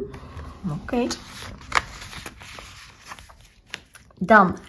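A plastic sleeve crinkles and rustles as it is handled.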